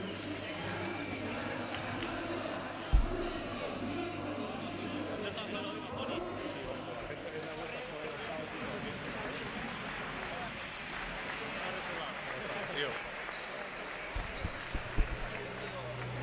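Basketballs bounce on a wooden floor.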